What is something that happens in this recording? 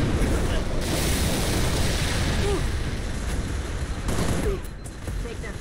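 Energy blasts crackle and boom loudly.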